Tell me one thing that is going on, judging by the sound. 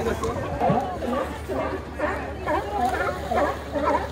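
Water splashes as a sea lion thrashes at the surface.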